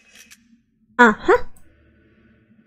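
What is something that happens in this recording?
A young woman exclaims briefly, close to a microphone.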